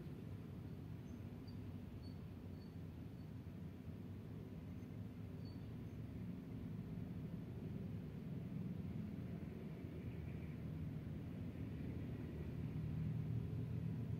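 Traffic passes by steadily on a nearby road.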